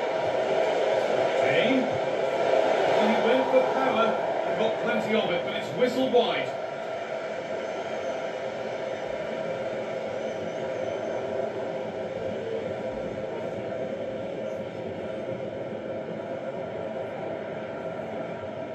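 A stadium crowd roars steadily through a loudspeaker, louder at first, then settling lower.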